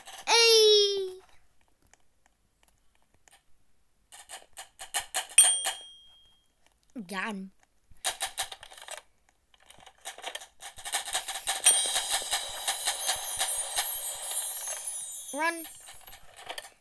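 A bright game chime rings out with a rising tone.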